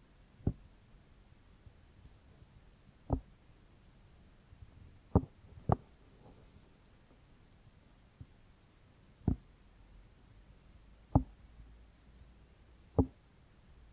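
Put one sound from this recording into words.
Close, soft thumps sound as hands tap and rub against a microphone.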